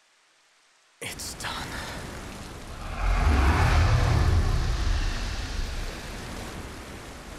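Rough sea water churns and roars.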